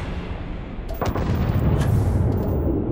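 A gun fires a loud shot.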